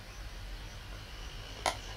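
A cricket ball smacks into a wicketkeeper's gloves.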